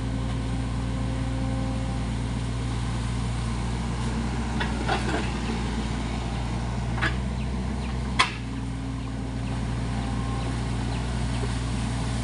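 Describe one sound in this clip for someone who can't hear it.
A diesel mini excavator engine rumbles as the machine works.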